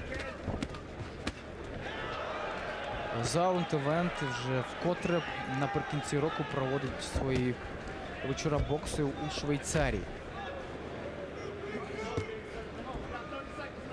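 Gloved punches thud against a body.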